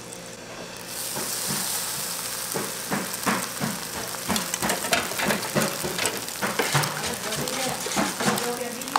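Egg batter sizzles loudly on a hot griddle.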